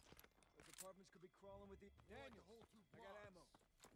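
Rifle shots crack nearby.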